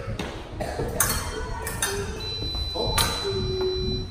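Fencing blades clash and click sharply.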